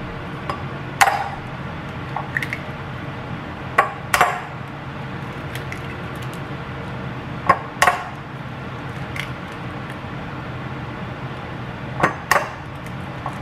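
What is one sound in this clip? An egg cracks sharply against the rim of a ceramic bowl.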